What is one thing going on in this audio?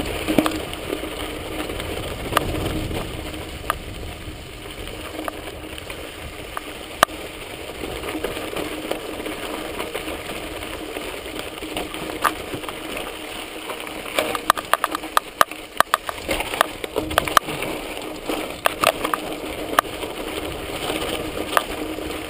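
Bicycle tyres crunch and roll over a dirt trail.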